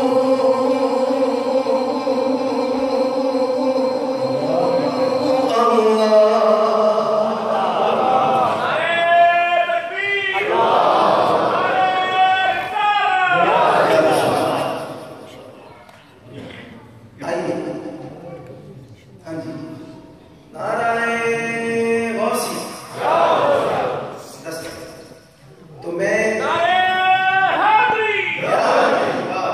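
A man sings into a microphone, heard through loudspeakers in a large echoing hall.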